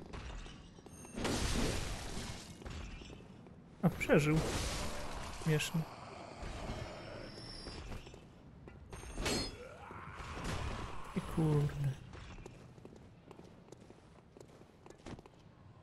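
Sword slashes and impacts clash in a game.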